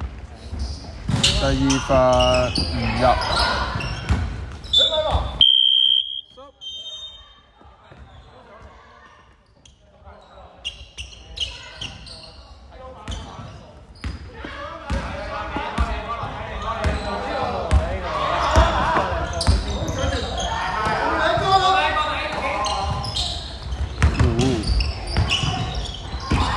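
Young men shout and call to each other in a large echoing gym.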